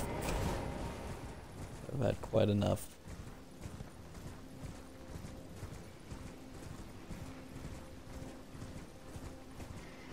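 A horse gallops over soft ground.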